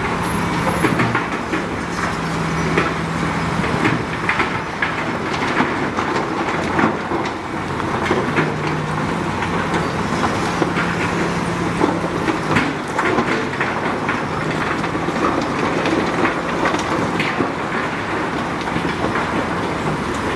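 Rocks scrape and clatter under a bulldozer's blade.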